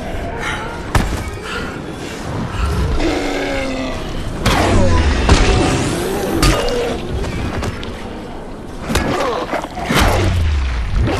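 A weapon thuds heavily into flesh several times.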